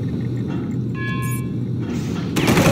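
A computer terminal beeps in short electronic tones.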